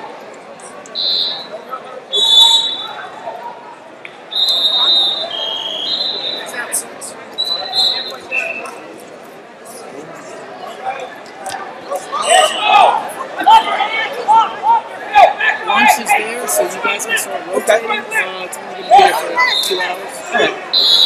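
A referee's whistle blows in short blasts.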